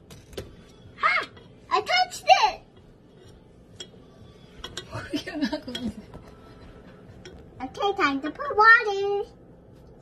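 A young girl talks and giggles close by.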